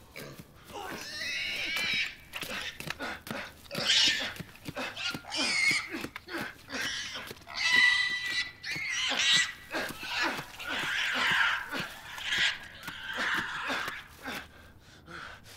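A woman sobs and wails loudly nearby.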